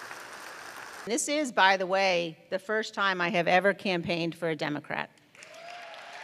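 A second woman speaks firmly into a microphone.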